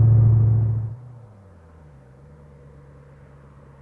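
A car engine hums quietly in the distance as the car approaches.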